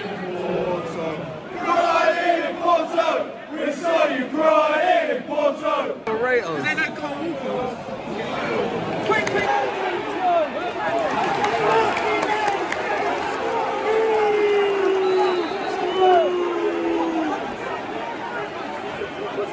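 A big crowd murmurs and shouts, with a roar around the stadium.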